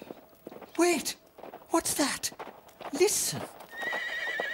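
A teenage boy speaks with excitement, close by.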